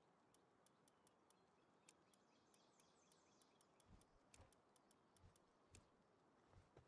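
Soft interface clicks tick quickly in a steady row.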